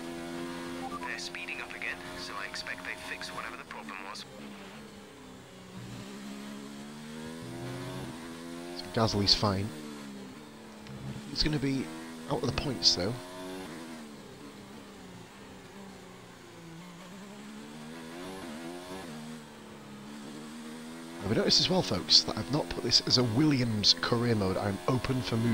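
A racing car engine whines at high revs, rising and falling as it shifts gears.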